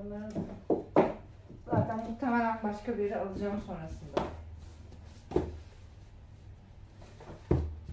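Books knock softly as they are set on shelves and in a box.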